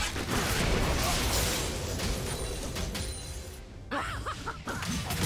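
Weapons clash and strike repeatedly.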